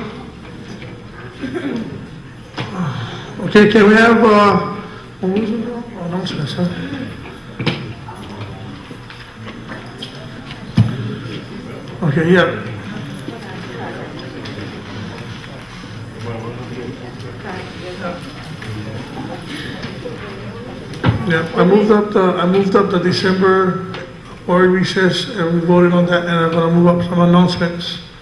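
A middle-aged man speaks into a microphone, heard through a loudspeaker, in a calm, halting way.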